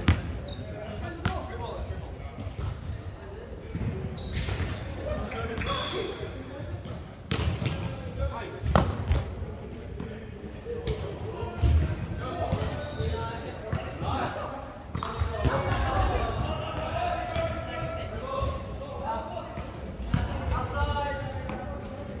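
A volleyball is struck with sharp slaps, echoing in a large hall.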